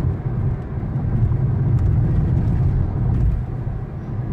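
A truck rumbles past close by.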